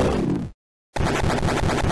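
A bright electronic blast rings out.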